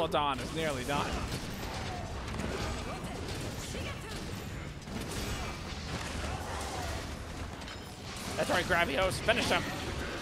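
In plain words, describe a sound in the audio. Explosions bang repeatedly.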